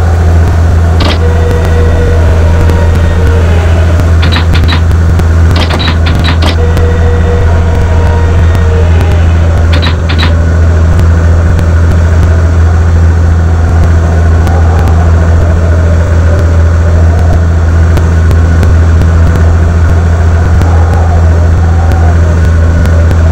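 A propeller plane's engines drone steadily.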